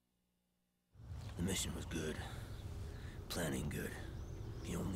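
An elderly man speaks slowly in a weak voice.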